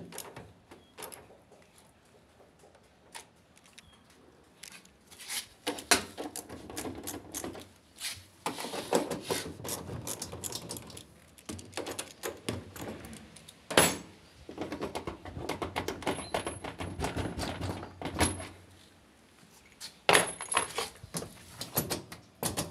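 A wrench clicks and rattles against metal fittings.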